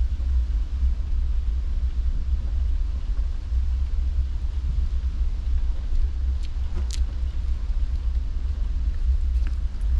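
Wind buffets loudly outdoors with a steady low rumble.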